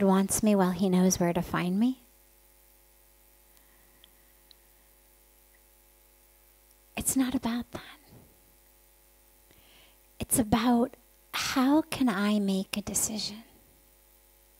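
A woman speaks calmly and warmly into a microphone, with pauses.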